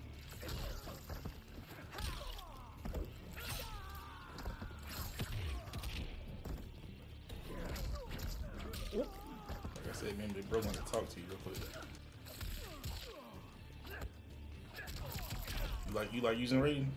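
Blows thud and whoosh in a fighting game.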